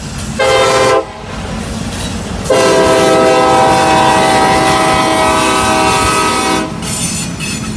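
A locomotive horn blares loudly in two blasts.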